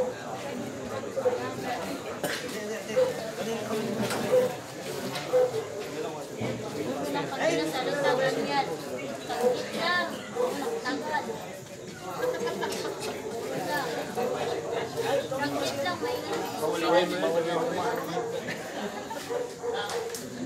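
A crowd of men and women chatters and murmurs all around.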